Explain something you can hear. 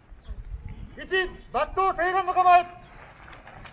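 Several men shout loudly together outdoors.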